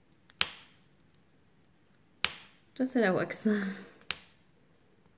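A pen taps sharply against a plastic tray a few times.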